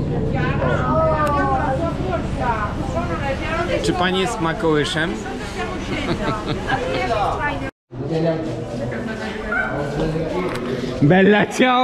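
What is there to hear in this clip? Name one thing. A crowd of people chatters.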